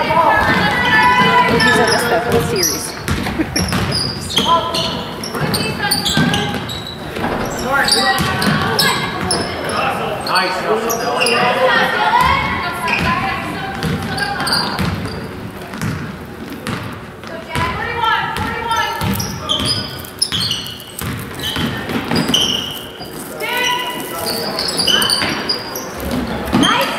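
A basketball bounces on the floor with hollow thuds.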